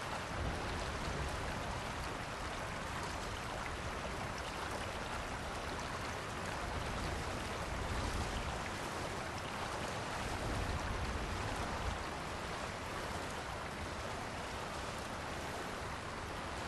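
Heavy rain pours steadily onto water.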